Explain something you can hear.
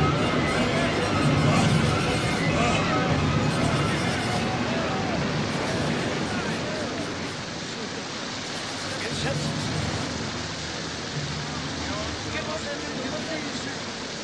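Stormy waves crash and roar against a boat.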